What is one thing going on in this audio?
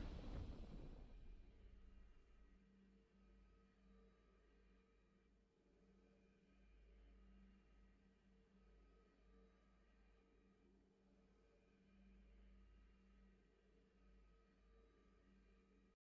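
A soft, low musical drone hums on quietly.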